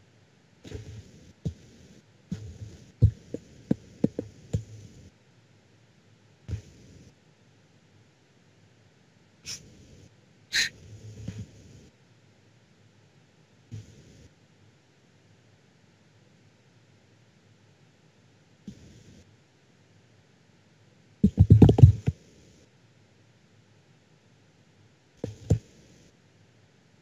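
A teenage boy speaks over an online call in short bursts.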